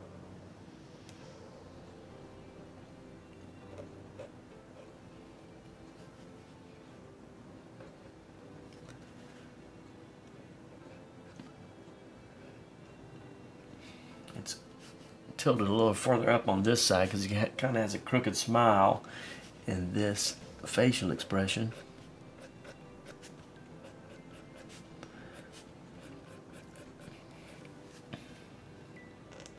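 A felt pen squeaks and scratches softly on paper.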